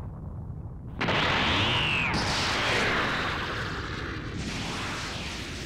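An energy blast roars and whooshes through the air.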